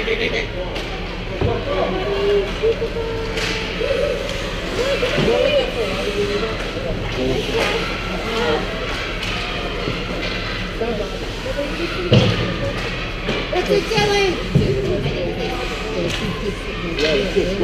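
Young players shout and call out across an echoing rink.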